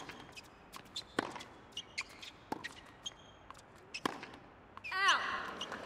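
A tennis ball is struck with a racket and bounces on a hard court.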